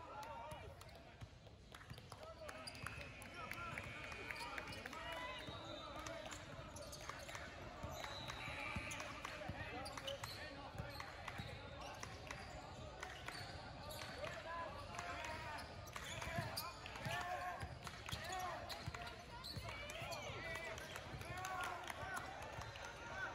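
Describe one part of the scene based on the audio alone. A crowd of players and spectators chatters in the background.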